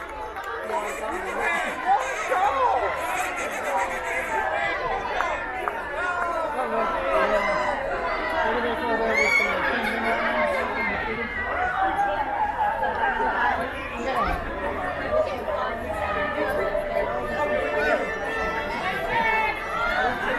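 A crowd of men, women and children chatters nearby outdoors.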